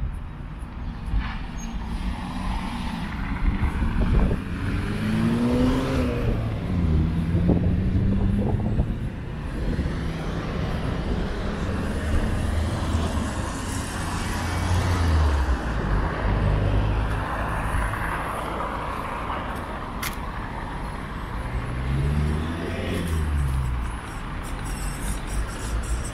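Traffic hums along a city street outdoors.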